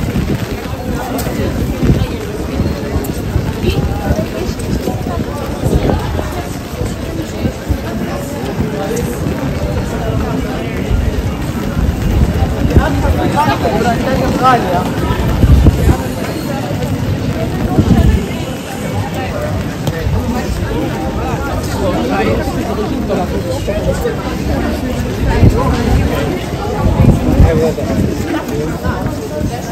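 Footsteps of a crowd walk on wet pavement.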